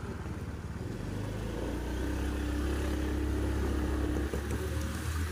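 Scooters ride past on a road.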